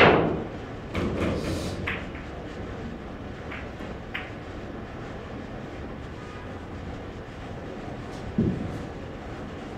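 Pool balls knock against each other and the cushions as they roll.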